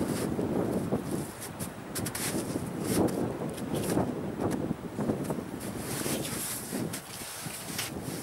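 Skis scrape and crunch over snow.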